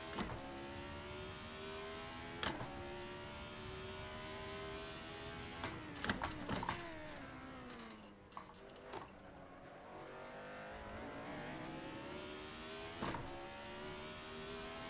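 A racing car engine roars, rising in pitch through the gears and dropping as it slows.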